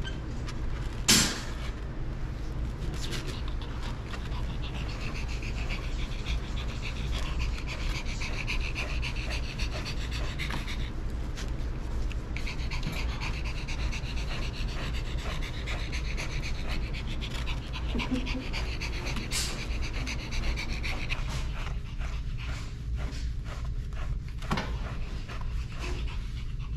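A wire brush scratches through a dog's thick fur.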